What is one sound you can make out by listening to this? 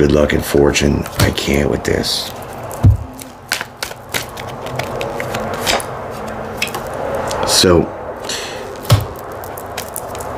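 Cards slap and shuffle on a table.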